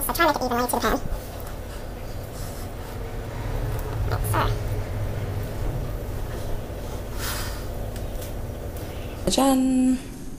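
Hands pat and press soft dough into a metal tray.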